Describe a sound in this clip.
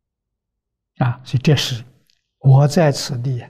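An elderly man speaks calmly into a microphone, close by.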